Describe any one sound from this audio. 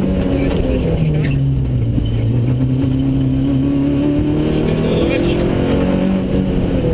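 A car engine roars loudly and revs up and down.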